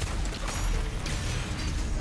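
Explosions crackle and pop.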